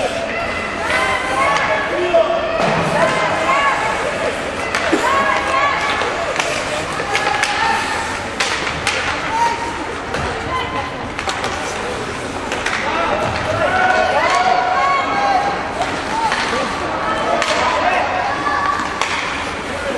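Spectators shout and cheer in a large echoing hall.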